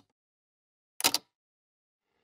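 A switch clicks.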